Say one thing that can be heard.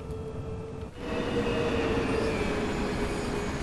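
A freight train rumbles past outdoors.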